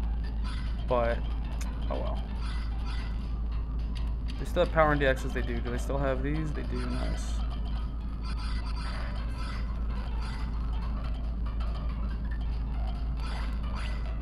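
Short electronic menu blips sound as selections change.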